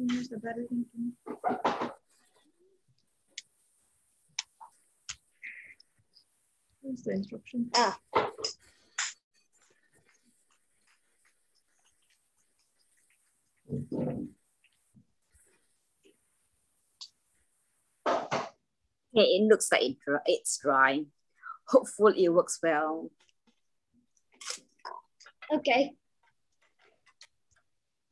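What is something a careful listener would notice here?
A paper towel rustles and crinkles.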